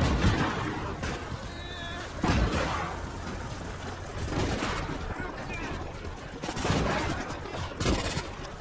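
Tank guns fire with loud booms.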